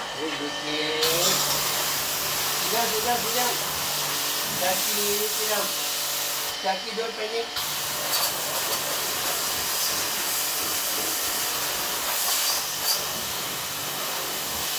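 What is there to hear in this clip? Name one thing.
Water sprays hard from a hose nozzle with a steady hiss.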